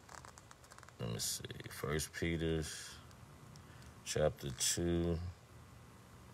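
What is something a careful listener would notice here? A man speaks calmly and close by, in short bursts.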